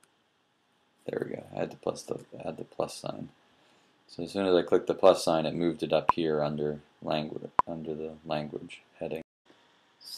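A young man speaks calmly and close into a microphone.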